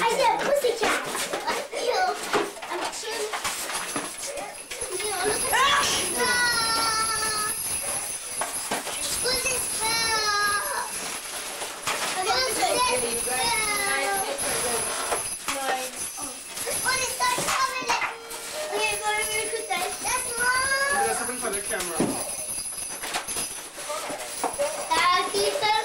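Children talk and squeal excitedly close by.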